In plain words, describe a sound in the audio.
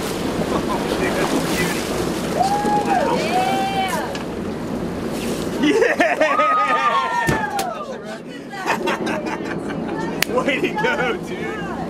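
Men shout excitedly close by.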